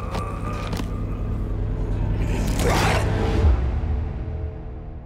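An elderly man snarls and groans in pain.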